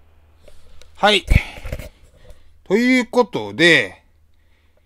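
A man speaks loudly and with animation close to the microphone.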